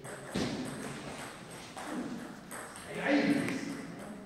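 A table tennis ball bounces sharply on a table in a large echoing hall.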